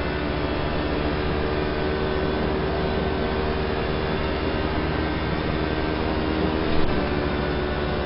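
A racing car engine roars steadily at high speed through speakers.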